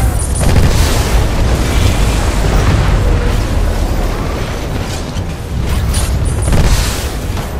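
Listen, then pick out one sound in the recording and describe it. Explosions rumble and blast.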